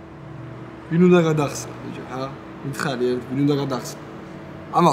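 A young man speaks in reply, close by.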